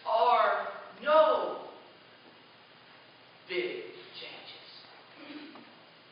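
A man speaks with emphasis through a microphone in a reverberant hall.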